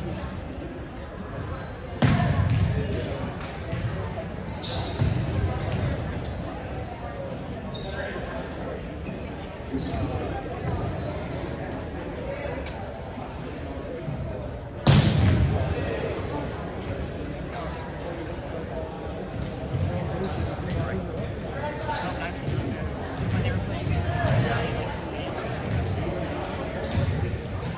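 Sneakers squeak on a wooden gym floor.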